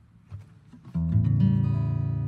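An acoustic guitar is strummed, ringing loudly.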